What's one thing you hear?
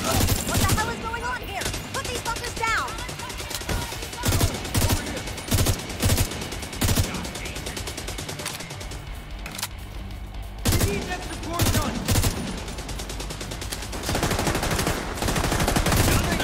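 A rifle fires in loud, rapid bursts.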